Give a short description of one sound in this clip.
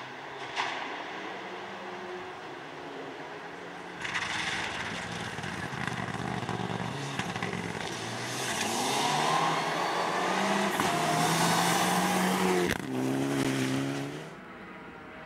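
A rally car engine roars at full throttle as it speeds past.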